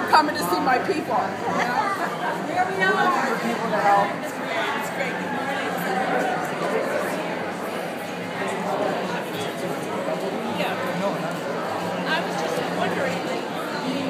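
A crowd of protesters chatters and calls out nearby, echoing in a large indoor hall.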